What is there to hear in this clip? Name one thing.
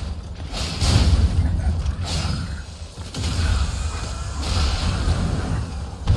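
Fiery explosions boom and crackle.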